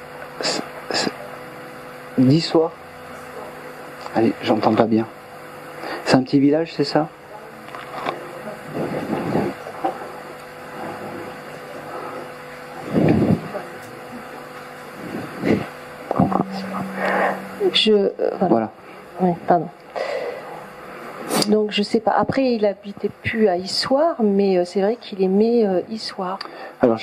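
A man speaks calmly into a microphone, heard through a loudspeaker in a room with a slight echo.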